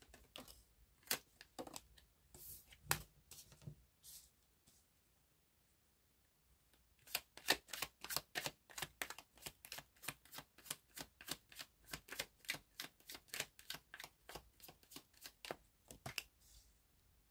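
Playing cards slide and tap on a table.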